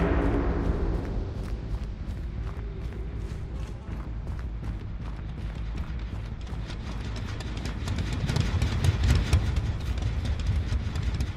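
Heavy footsteps tread steadily through grass.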